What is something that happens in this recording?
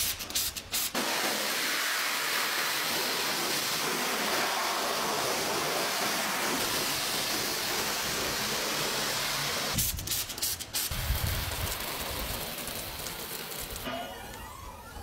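A pressure washer sprays water against a car's body.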